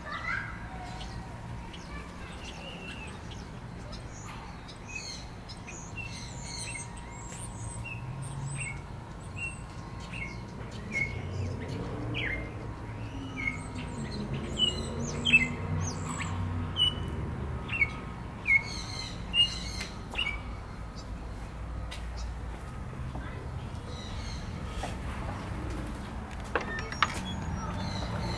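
Small birds chirp and tweet nearby in short bursts.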